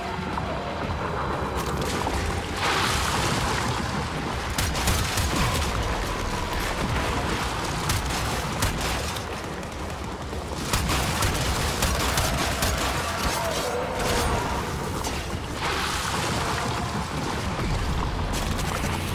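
Explosions boom and crackle in a video game.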